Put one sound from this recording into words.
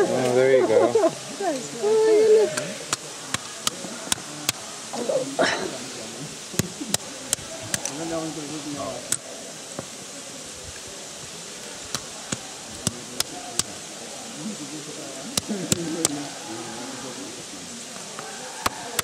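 A stone knocks sharply against a coconut shell on rock, in quick single taps.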